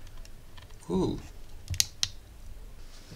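A small button clicks.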